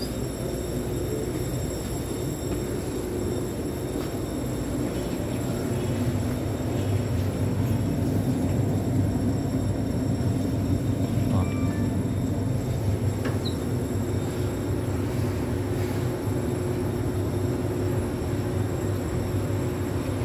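A train rumbles steadily along its tracks, heard from inside a carriage.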